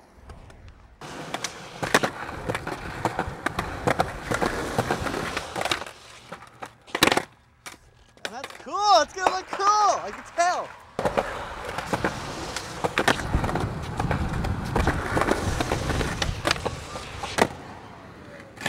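A skateboard clacks as its tail hits the ground.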